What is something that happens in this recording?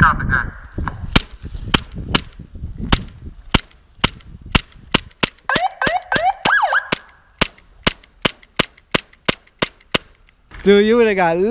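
A pistol fires a rapid string of sharp shots.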